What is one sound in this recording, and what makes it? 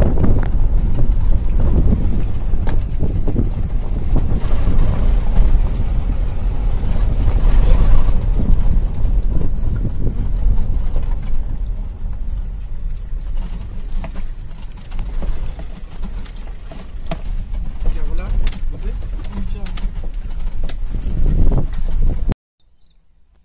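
A car drives along, heard from inside with wind rumbling through an open window.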